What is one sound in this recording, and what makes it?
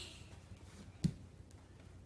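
A child's feet thump onto a wooden floor.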